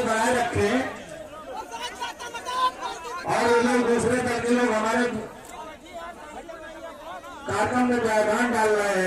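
Many people talk and murmur in a large crowd.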